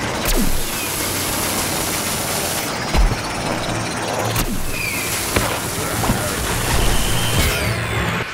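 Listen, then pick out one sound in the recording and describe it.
A video game laser beam fires with a buzzing zap.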